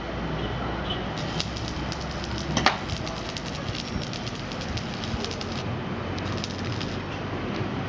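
An electric welder crackles and hisses on metal.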